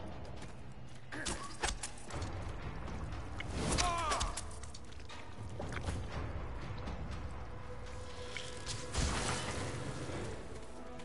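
Fantasy battle sound effects clash and whoosh.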